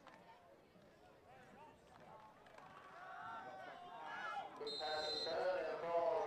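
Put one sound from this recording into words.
A crowd of young men shouts and cheers, growing louder.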